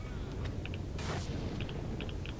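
A rifle fires a single shot.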